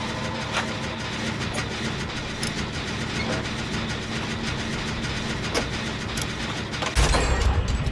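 A generator engine clanks and sputters while being repaired.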